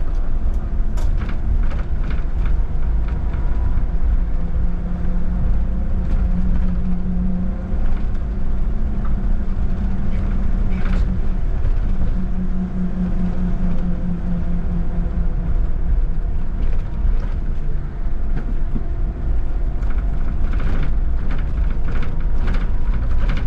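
A tram rumbles steadily along its rails with a low hum.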